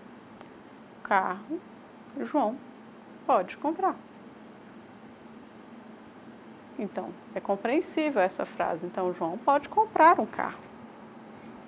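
A woman speaks calmly in short bursts, close by.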